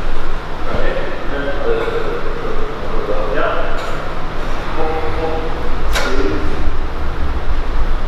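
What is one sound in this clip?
A young woman breathes out hard with effort.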